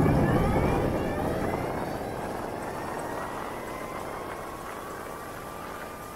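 A motorcycle engine hums and slowly winds down.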